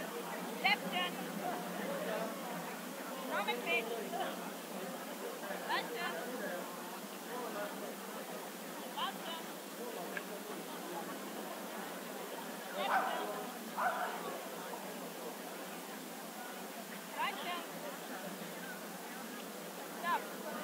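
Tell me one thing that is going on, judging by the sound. A woman gives short commands to a dog.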